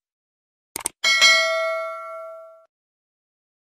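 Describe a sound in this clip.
A small bell chimes once and slowly rings out.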